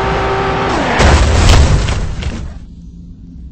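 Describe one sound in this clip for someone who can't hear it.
A car crashes with a loud thud.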